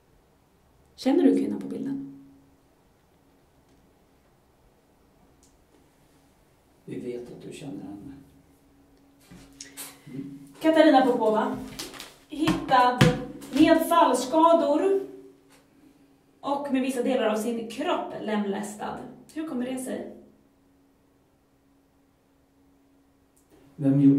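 A woman speaks calmly and firmly nearby.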